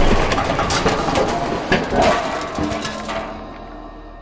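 Loose rubble clatters and crashes down.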